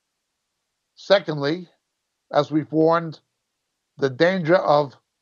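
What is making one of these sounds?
A middle-aged man speaks calmly into a close microphone, heard as if through an online call.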